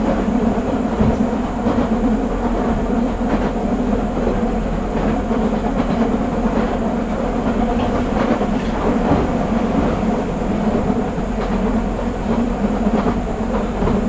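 A stopped electric train hums steadily while idling.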